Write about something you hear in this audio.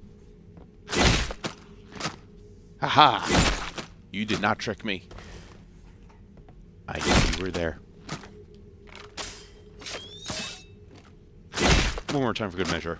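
Heavy blows thud against a creature in a game.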